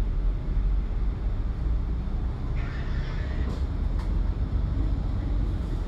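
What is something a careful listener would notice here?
A bus engine rumbles steadily from inside the moving bus.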